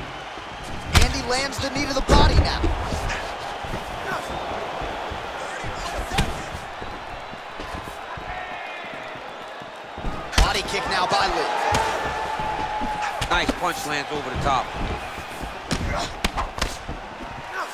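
Kicks and punches land with sharp thuds.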